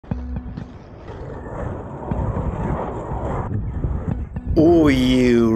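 Inline skate wheels roll and rumble on rough asphalt.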